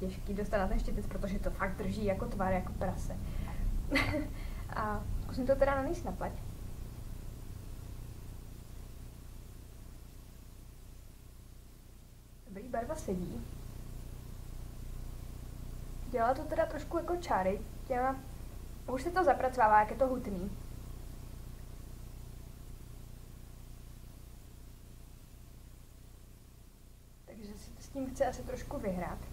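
A young woman talks calmly and close to a microphone, in bursts with pauses.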